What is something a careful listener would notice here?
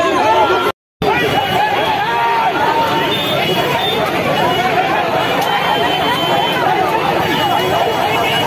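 A large crowd outdoors chants and shouts in a noisy roar.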